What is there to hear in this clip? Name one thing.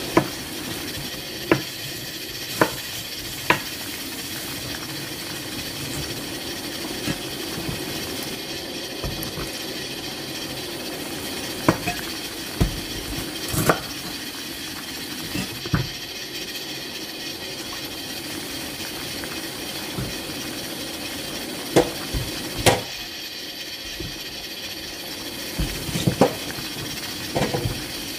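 Water boils hard in a pot, bubbling and churning steadily.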